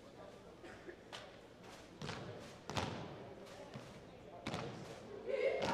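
Cheerleaders clap their hands sharply.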